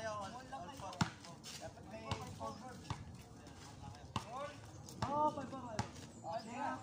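A basketball bounces on hard ground.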